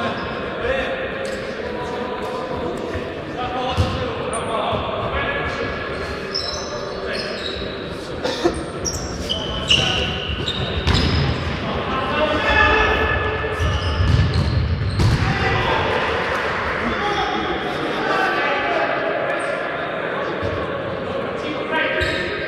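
Men shout to each other across an echoing sports hall.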